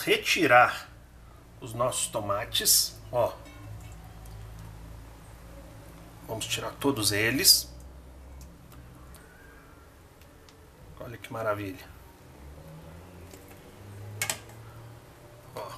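Metal tongs knock against the side of a pot.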